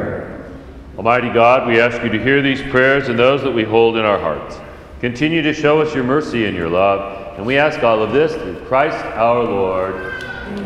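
Another older man speaks steadily through a microphone in an echoing room.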